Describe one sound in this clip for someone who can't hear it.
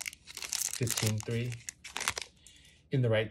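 Hands handle stiff cards with a light rustle.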